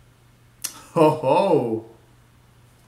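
A young man speaks briefly and with animation close to the microphone.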